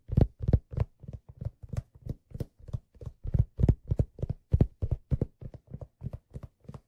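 A man beatboxes a fast, steady rhythm close to a microphone.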